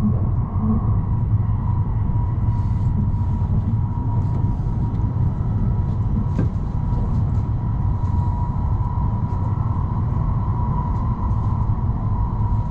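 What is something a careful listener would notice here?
A train's motor whines with a steady high hum.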